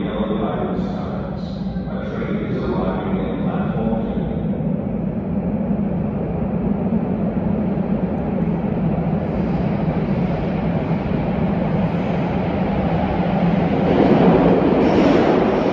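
An electric subway train hums while standing at a platform.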